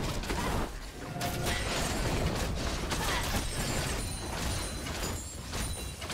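Game spell effects crackle and thud during a fight.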